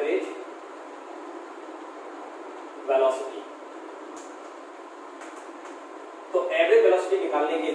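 A young man speaks calmly, as if teaching.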